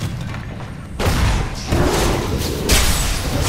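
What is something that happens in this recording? Weapons strike loudly in a fight.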